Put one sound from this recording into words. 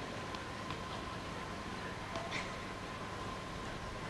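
A tennis ball bounces on the court.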